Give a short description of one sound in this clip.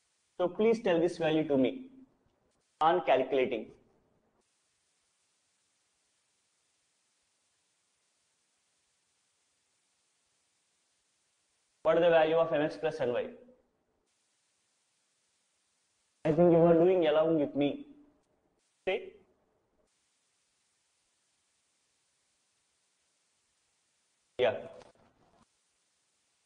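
A man speaks in short, calm phrases with long pauses, close to a microphone.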